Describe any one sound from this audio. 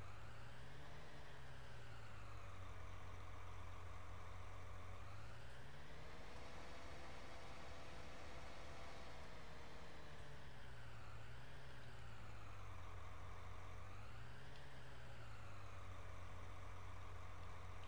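A hydraulic crane arm whines as it lifts a load.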